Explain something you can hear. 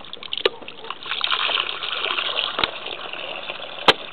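Liquid pours and splashes into a bucket.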